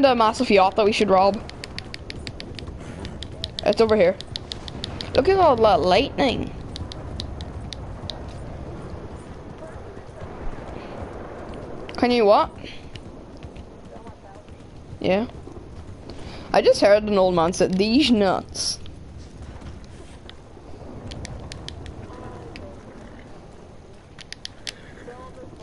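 Horse hooves clop steadily at a trot.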